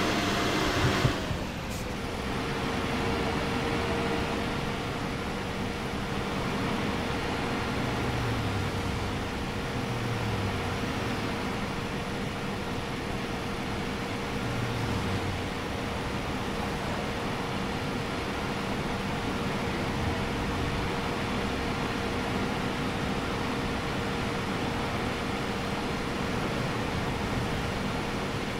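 A bus engine hums steadily while driving along a highway.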